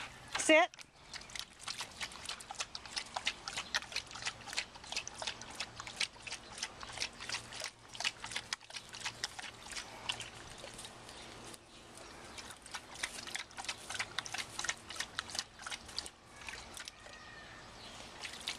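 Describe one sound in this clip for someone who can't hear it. A dog splashes its paws about in shallow water.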